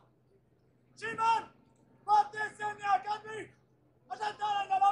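A man shouts loud drawn-out parade commands outdoors.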